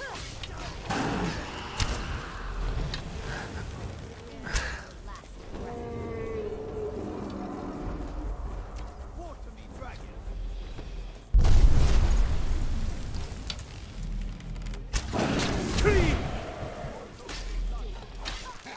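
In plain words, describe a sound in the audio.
A bow twangs as arrows are loosed.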